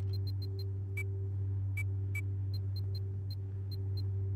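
Soft menu clicks tick one at a time.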